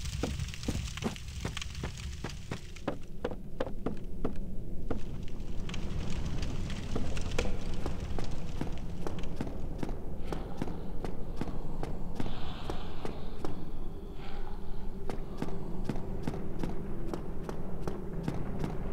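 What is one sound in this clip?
Quick footsteps run over wooden planks and stone.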